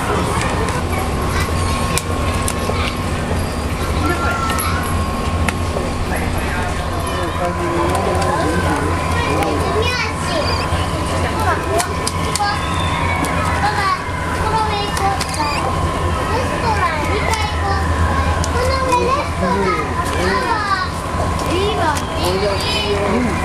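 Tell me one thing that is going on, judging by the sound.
A capybara gnaws and scrapes its teeth on a wooden log, close by.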